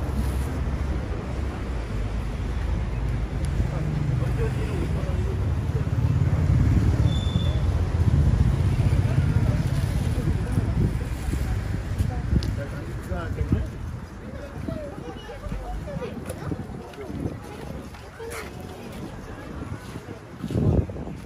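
People chatter and murmur nearby on a busy street.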